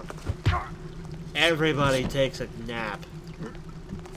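A body thuds onto stone.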